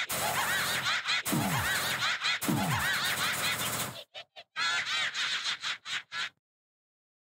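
Rapid electronic game sound effects warble and chirp.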